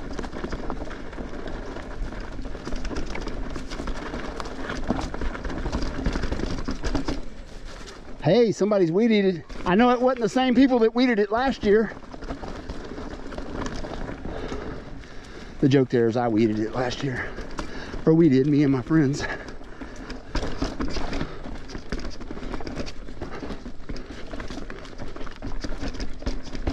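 Bicycle tyres roll and crunch over a dirt and rocky trail.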